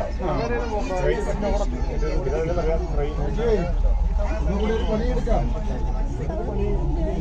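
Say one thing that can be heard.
A crowd of men and women chatter all around, close by.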